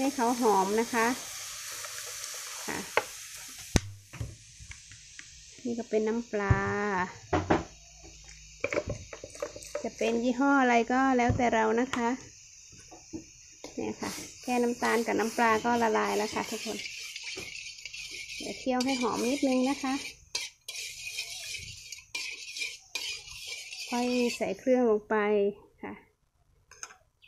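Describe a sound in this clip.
Hot liquid sizzles and bubbles in a pan.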